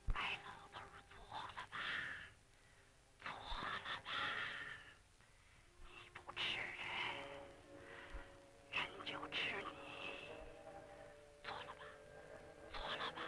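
A woman speaks in a frightened voice nearby.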